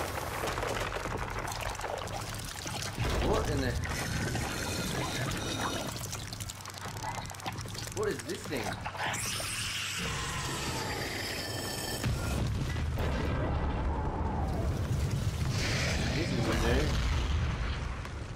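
A huge monster roars and growls deeply.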